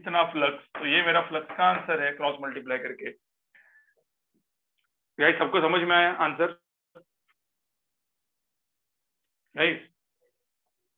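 A man explains calmly through a microphone, in short bursts with pauses.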